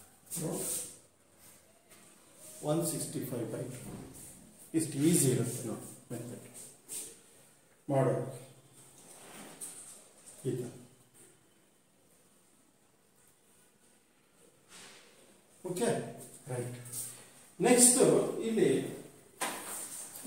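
A middle-aged man explains calmly and clearly, close by, with pauses.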